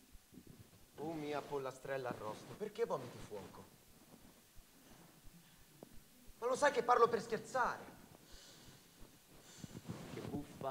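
A woman speaks expressively in bursts, with quiet pauses between.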